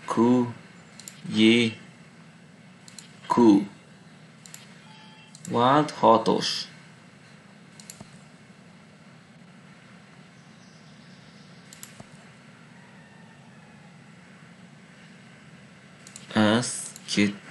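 A man speaks with animation, up close through a microphone.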